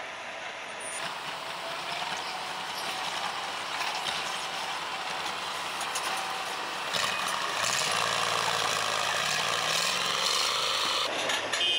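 A tracked armored vehicle's engine roars as it rolls down a ramp.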